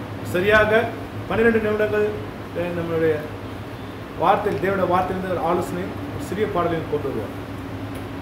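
A man speaks calmly, reading out nearby.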